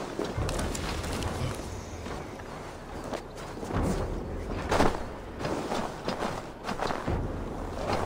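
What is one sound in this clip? Leafy bushes rustle as someone pushes through them.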